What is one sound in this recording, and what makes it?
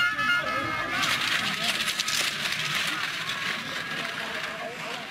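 Skis swish and scrape over snow close by.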